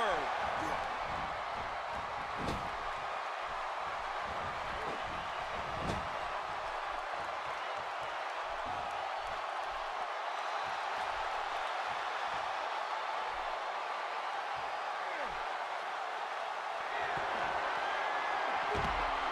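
A large arena crowd roars and cheers steadily.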